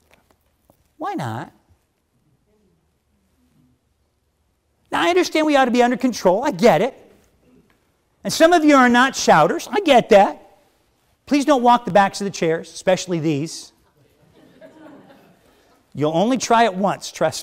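A man speaks with emphasis through a microphone, pausing between phrases.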